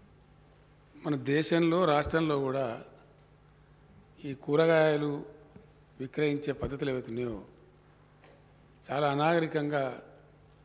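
A man speaks slowly into a microphone, with pauses between phrases.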